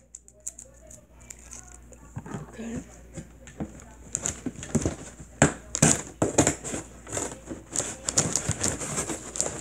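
Cardboard rustles and scrapes as a box is opened close by.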